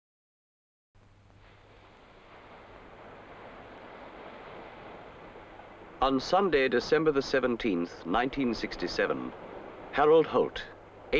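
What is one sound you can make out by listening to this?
Ocean waves break and wash in with a steady rushing roar.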